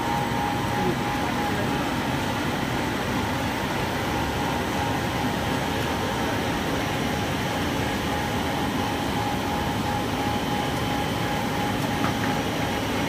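Industrial machinery rumbles and whirs steadily, with a high steady hum.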